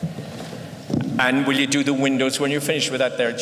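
An elderly man sings into a microphone, heard through loudspeakers in a large hall.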